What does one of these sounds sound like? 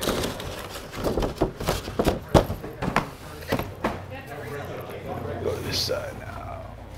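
Cardboard shoe boxes knock and thud as they are stacked.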